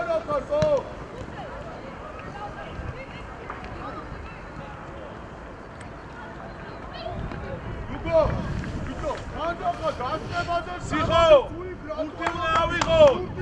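Young players shout and call out to each other outdoors.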